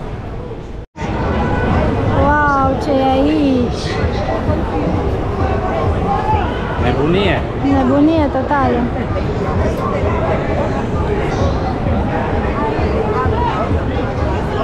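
A crowd chatters busily outdoors.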